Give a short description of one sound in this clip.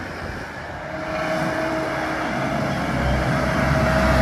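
A tractor engine rumbles closer as it drives back.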